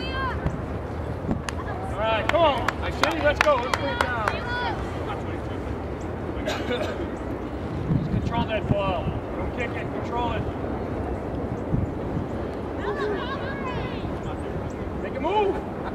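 Young female players shout to each other across an open field.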